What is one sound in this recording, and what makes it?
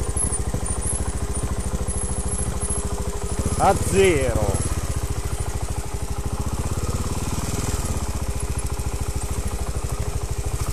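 A dirt bike engine chugs steadily close by, revving briefly.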